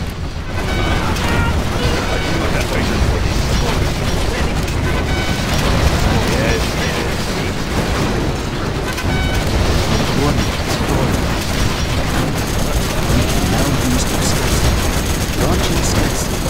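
Gunfire rattles rapidly.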